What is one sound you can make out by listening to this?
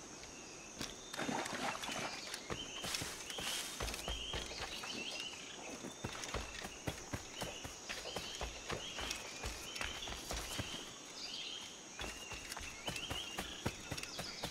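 Footsteps crunch through leafy undergrowth.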